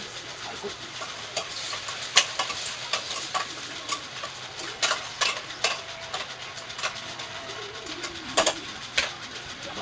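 Metal utensils clink against a pot.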